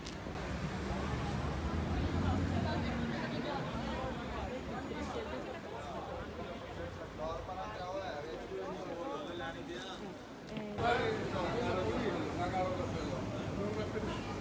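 A crowd murmurs and chatters in a busy covered market.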